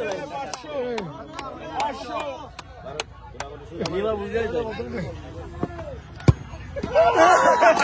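Men in a crowd talk and chatter close by, outdoors.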